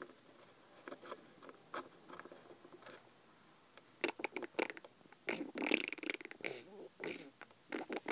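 A small plastic toy taps lightly on a wooden table.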